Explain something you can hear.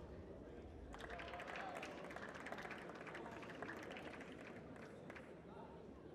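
Spectators applaud briefly.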